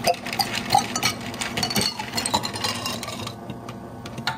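Water pours over ice cubes into a jug, with the ice crackling and clinking.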